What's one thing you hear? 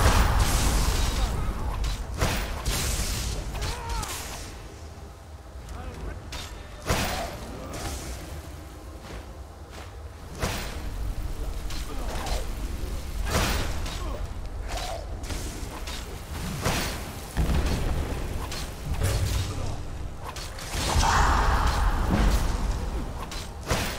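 Magic spells crackle and whoosh.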